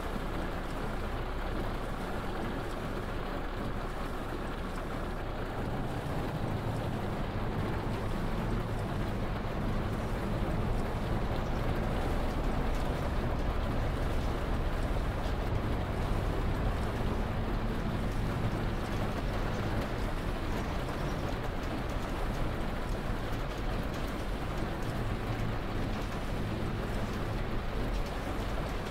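Rain patters steadily on a windscreen.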